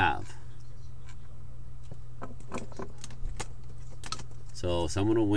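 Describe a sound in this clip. Cardboard cards tap and slide softly against a table.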